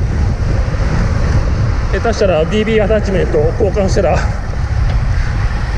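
Wind rumbles steadily past a fast-moving bicycle.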